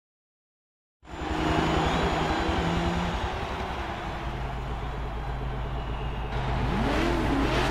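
A sports car engine idles with a deep, steady rumble.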